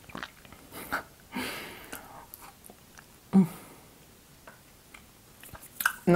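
A young woman chews and munches candy.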